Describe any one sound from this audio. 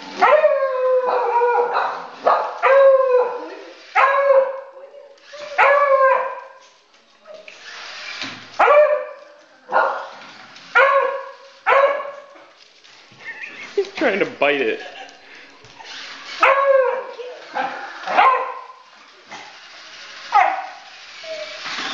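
A dog barks again and again, close by.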